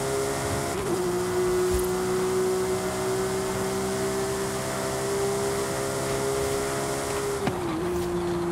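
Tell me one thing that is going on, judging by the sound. Tyres hiss over the road at speed.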